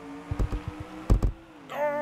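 A ball thumps as a car hits it.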